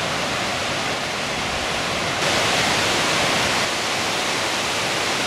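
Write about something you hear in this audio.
A river rushes steadily over rocks and small falls.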